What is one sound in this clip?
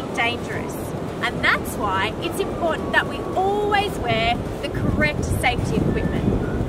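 A young woman talks cheerfully to the listener, outdoors in wind.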